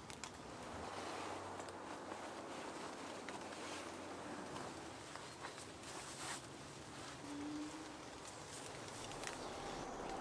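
Camouflage netting rustles and scrapes as it is handled.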